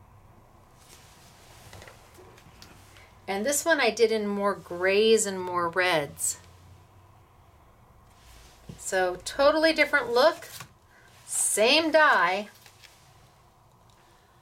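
A stiff card slides and taps on a wooden table.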